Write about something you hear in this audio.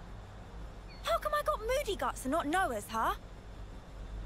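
A young woman speaks with mild surprise, close by.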